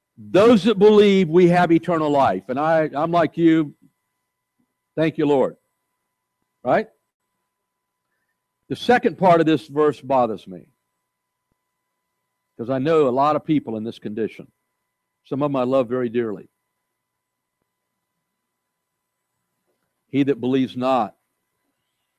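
A man speaks calmly through a microphone in a large room, with pauses.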